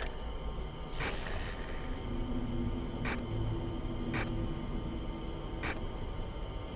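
Short electronic clicks sound as views switch.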